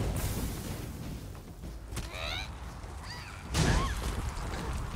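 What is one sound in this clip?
Weapon blows strike with sharp thuds.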